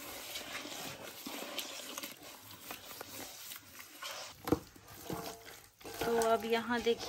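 Hands squelch and slap through a thick wet paste.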